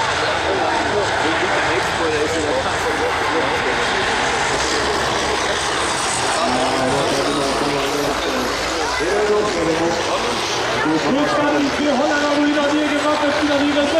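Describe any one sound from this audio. Diesel combine harvester engines roar and rev hard under load.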